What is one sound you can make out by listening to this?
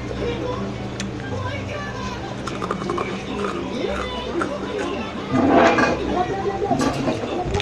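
A young girl crunches and chews a snack close to a microphone.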